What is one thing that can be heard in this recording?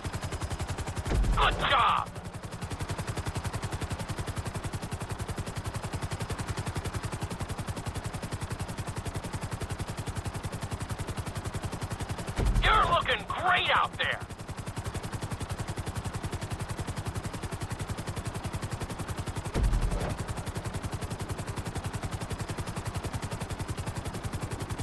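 A helicopter's rotor chops steadily overhead.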